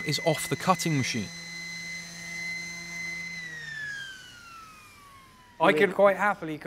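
An electric sander whines steadily and then winds down.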